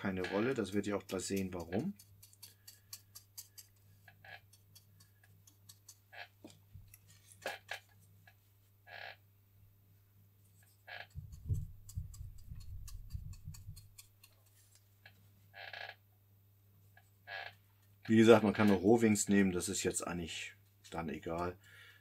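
A small brush scrapes and dabs softly on a hard surface.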